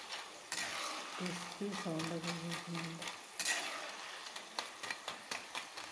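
Hot oil sizzles and crackles steadily.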